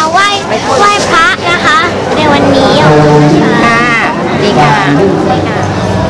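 A young girl speaks excitedly up close.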